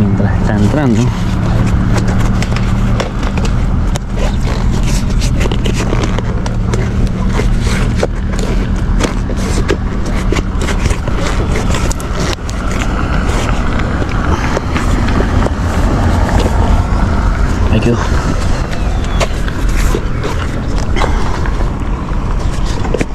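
Rubber rubs and squeaks as a bicycle tyre is worked onto a wheel rim.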